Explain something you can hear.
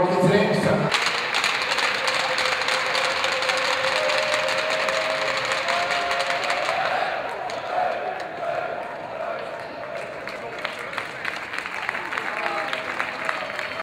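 Hockey sticks tap and knock on the ice in a large echoing arena.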